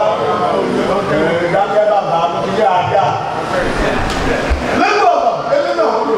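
A man sings loudly into a microphone, heard through loudspeakers in an echoing hall.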